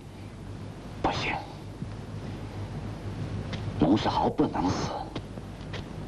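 An older man answers in a stern voice.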